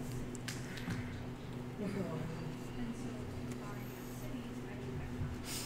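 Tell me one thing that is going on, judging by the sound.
Cards shuffle softly in a player's hands.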